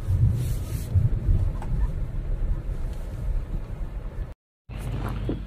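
A car engine rumbles.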